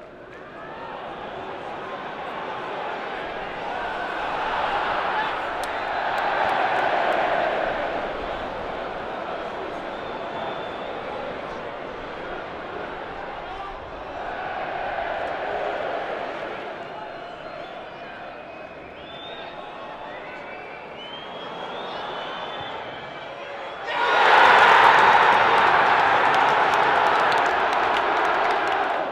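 A large stadium crowd murmurs and chants steadily outdoors.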